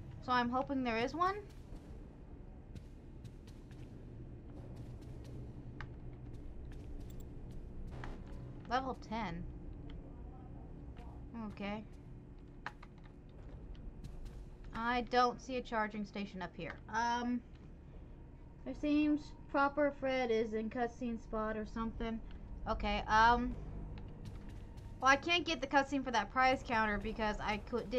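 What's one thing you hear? A young woman talks with animation into a close microphone, in bursts.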